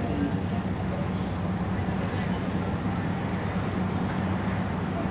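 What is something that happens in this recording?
A diesel city bus engine drones while cruising, heard from inside the bus.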